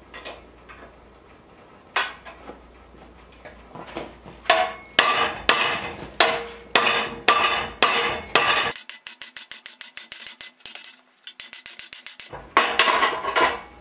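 A metal rod clangs and rattles as it is bent in a vise.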